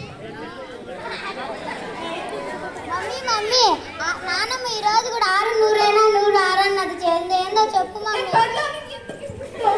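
A girl speaks loudly in a high voice.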